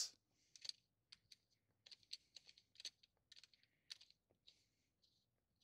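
Plastic parts click and rattle close by.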